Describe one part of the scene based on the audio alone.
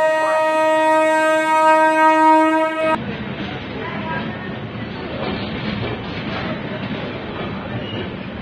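A train rolls slowly along the rails with rumbling and clatter.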